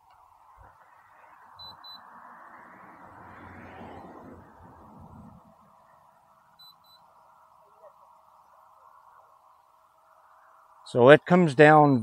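A drone buzzes steadily overhead.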